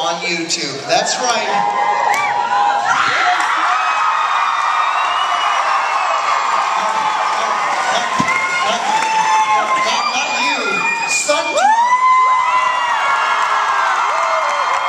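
A crowd cheers and screams loudly.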